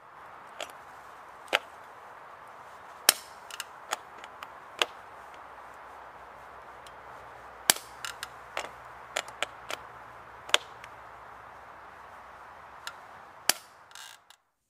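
A shoe taps and scuffs against a bicycle pedal.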